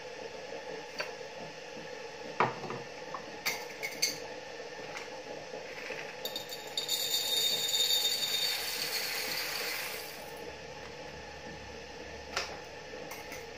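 Cups and utensils clink and knock on a counter.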